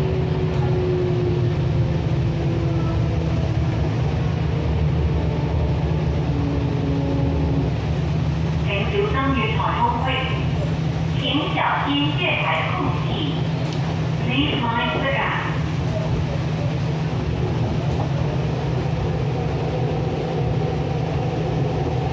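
An electric train rumbles along the track, heard from inside a carriage.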